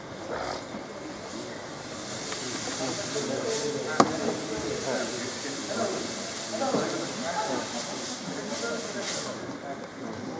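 A fog machine hisses steadily.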